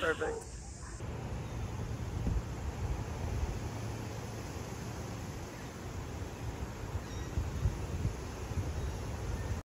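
Wind blows outdoors, rumbling low.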